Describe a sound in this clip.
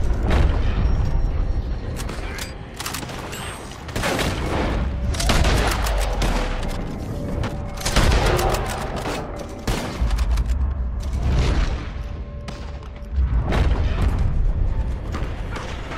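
Gunshots crack and echo outdoors.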